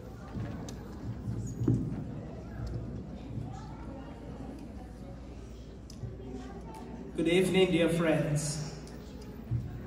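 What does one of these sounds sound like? A man speaks loudly into a microphone, heard over loudspeakers in a large echoing room.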